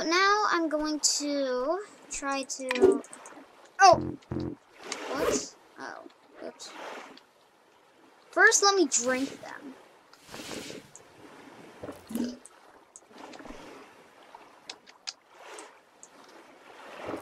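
Water swishes and gurgles as a swimmer strokes underwater.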